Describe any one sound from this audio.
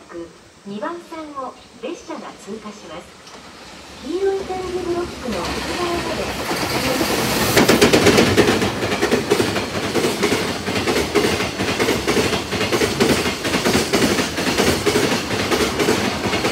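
A freight train approaches and rumbles past close by.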